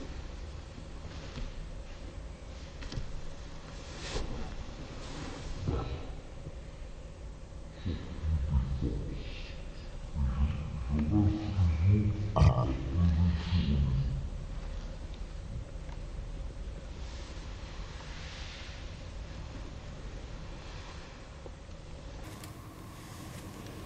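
Judo uniforms rustle and rub as two men grapple on a mat.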